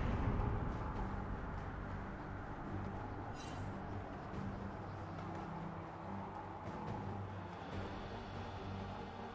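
Game sound effects whoosh as a winged figure flies.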